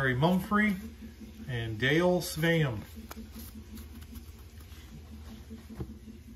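Cardboard cards slide and tap against each other.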